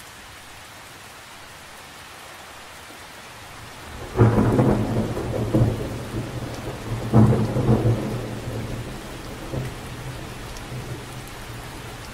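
Rain patters steadily onto the surface of a lake.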